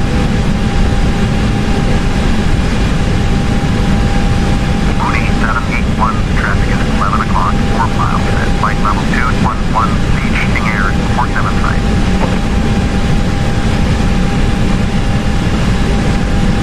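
A jet engine drones steadily in a cockpit.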